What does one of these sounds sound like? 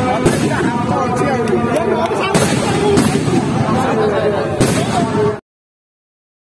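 Fireworks crackle and bang loudly outdoors.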